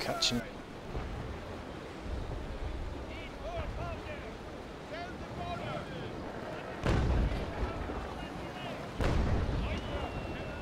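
Cannons boom in the distance.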